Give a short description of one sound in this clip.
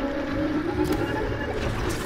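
A bowstring creaks.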